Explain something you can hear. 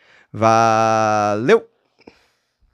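A young man sings out a long, loud note close to a microphone, ending with a rising squeal.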